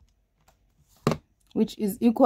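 A calculator is set down on a table with a knock.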